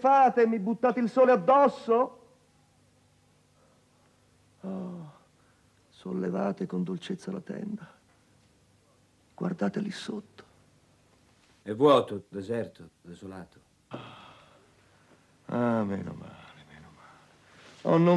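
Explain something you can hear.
An elderly man speaks slowly and theatrically nearby, with pauses.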